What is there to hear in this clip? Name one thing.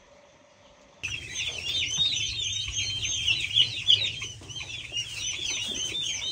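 Many chicks peep loudly and continuously.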